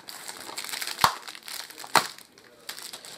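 A plastic case clicks and snaps.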